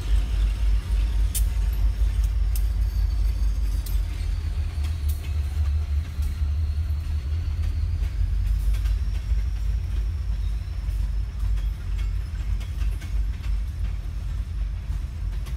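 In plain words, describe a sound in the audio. Freight cars clatter along the tracks.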